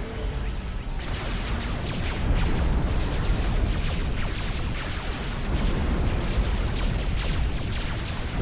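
Gunfire crackles and small explosions pop in a battle.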